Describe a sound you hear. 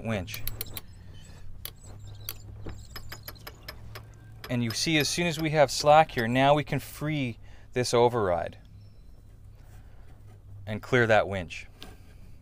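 A winch ratchets with quick metallic clicks.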